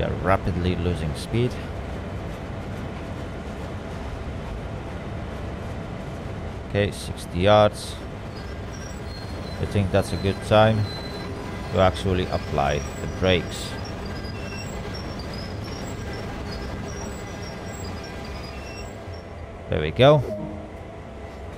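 Steel wheels roll on rails and slow to a stop.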